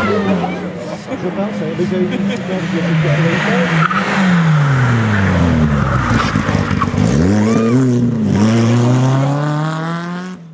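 A second rally car engine revs loudly and roars past close by.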